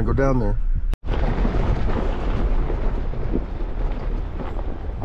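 A vehicle engine rumbles as it drives over rough ground.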